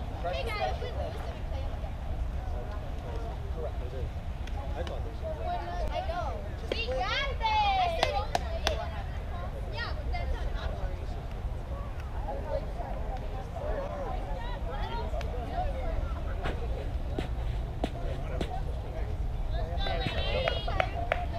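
Young girls call out and chant across an open field.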